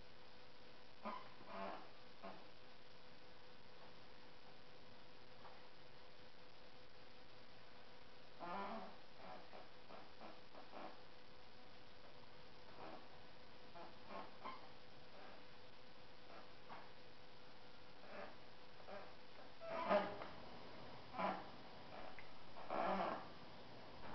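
A brush scrapes and dabs against a stiff fabric sheet.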